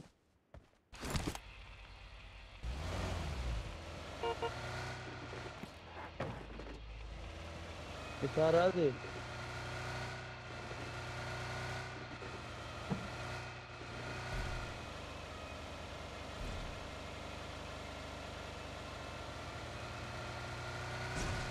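A car engine starts and roars steadily as the car drives.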